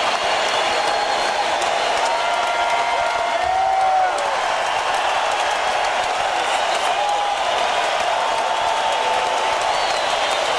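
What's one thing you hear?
A large arena crowd cheers and whistles loudly, echoing through the hall.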